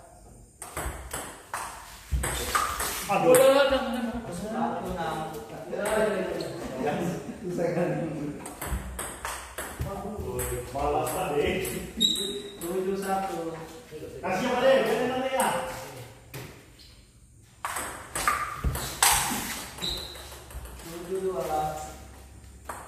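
A ping pong ball clicks back and forth off paddles and a table.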